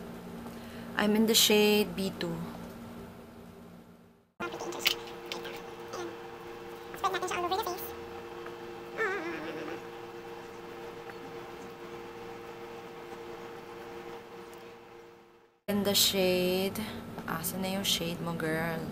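A young woman talks calmly and close to the microphone.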